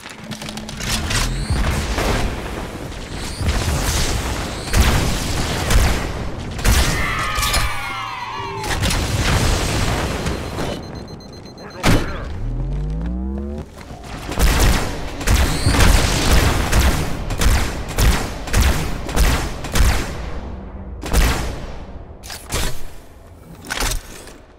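Energy weapons fire in rapid bursts of sharp zaps.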